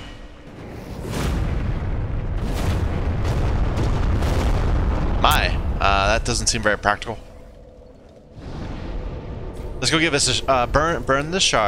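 A loud rumbling blast roars.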